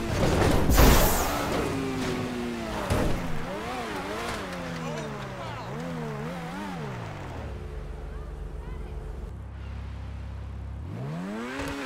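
A racing car engine revs up and down.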